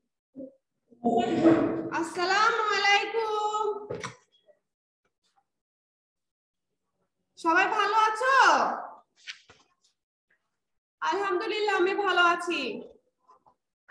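A young woman speaks clearly and slowly, close to a microphone, in short phrases with pauses.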